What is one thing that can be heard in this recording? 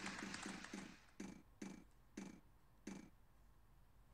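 A game wheel clicks as it spins and slows.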